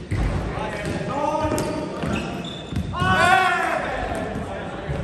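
Young men shout and call out during a volleyball game in an echoing hall.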